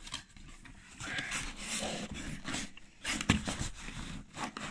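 A fabric-covered case slides against cardboard.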